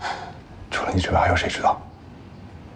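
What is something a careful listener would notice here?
A man speaks earnestly up close.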